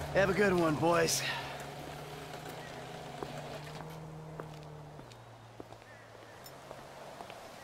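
Footsteps tap on paving as a man walks.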